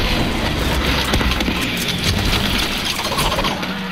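An explosion booms nearby.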